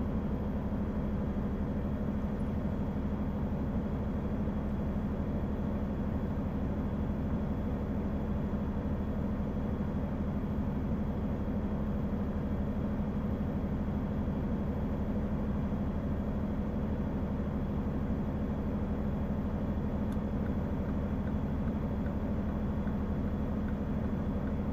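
Tyres roll on a highway.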